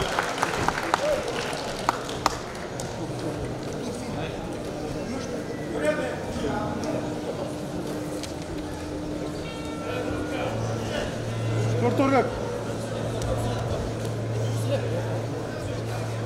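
A man speaks over a loudspeaker.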